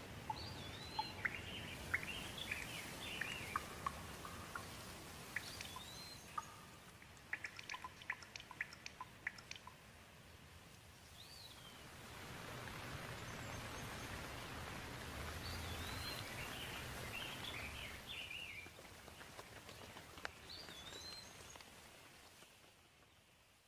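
Rain patters steadily on leaves.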